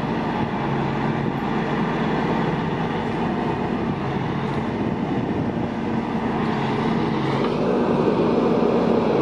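A heavy truck engine idles with a steady low rumble.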